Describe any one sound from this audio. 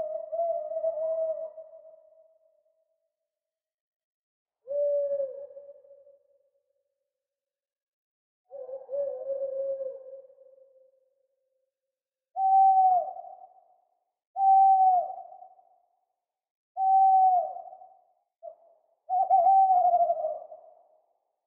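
An owl hoots in a series of long, low calls with pauses between them.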